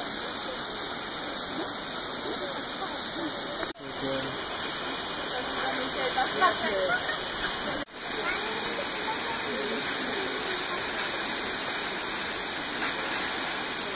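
A tall waterfall roars as it pours down onto rock.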